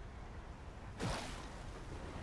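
A heavy blow lands with a sharp crack.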